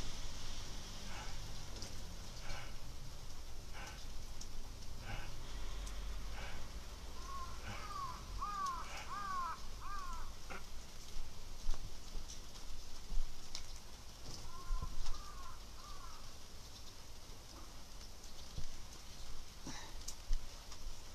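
Bedding rustles softly as a person shifts about on it.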